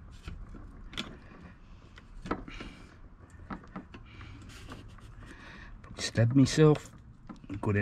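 A screwdriver clicks and scrapes against metal.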